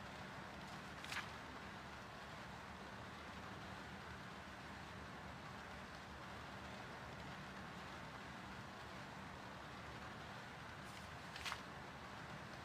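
A book page flips over with a quick papery swish.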